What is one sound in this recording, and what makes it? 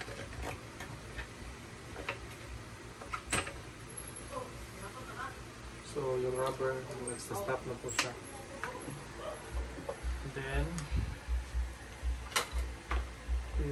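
Plastic shelf parts click and knock together.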